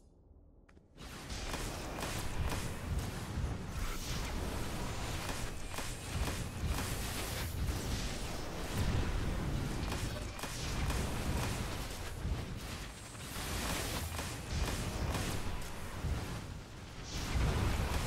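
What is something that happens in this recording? Electric energy blasts crackle and roar in rapid bursts.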